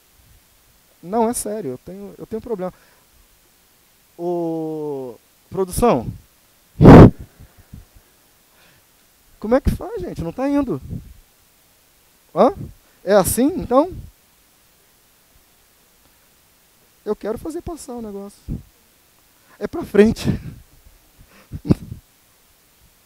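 A man speaks with animation through a headset microphone in a large hall.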